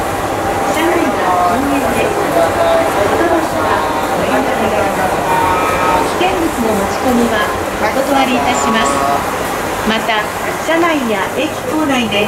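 Footsteps shuffle on a platform and into a train.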